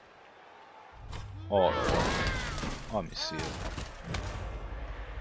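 Armoured players crash together in a heavy tackle.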